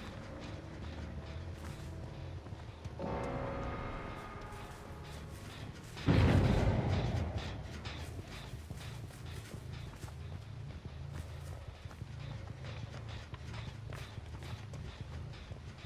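Heavy footsteps tread steadily over dry leaves and dirt.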